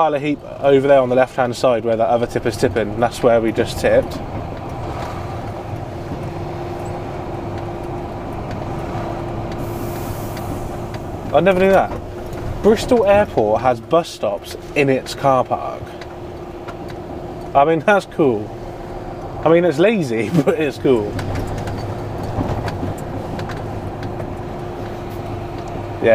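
A large vehicle's engine hums steadily from inside the cab.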